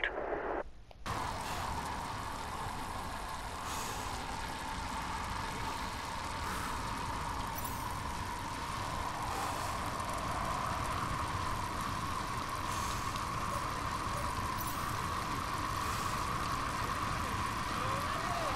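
Bicycle tyres hum steadily on a paved road.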